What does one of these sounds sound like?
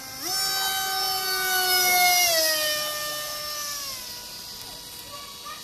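A jet engine roars and whines overhead, dropping in pitch as it passes and fading.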